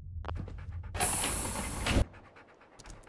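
A heavy metal hatch grinds open.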